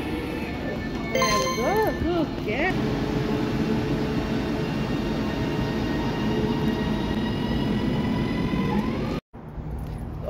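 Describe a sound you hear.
A train engine hums steadily nearby.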